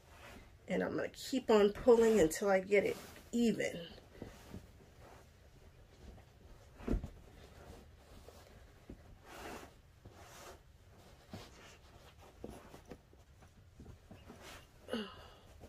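Fabric rustles softly as hands turn a stuffed cloth ball.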